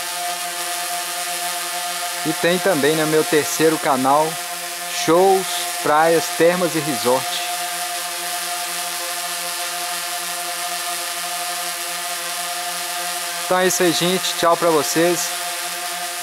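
A quadcopter drone hovers close overhead, its propellers buzzing steadily.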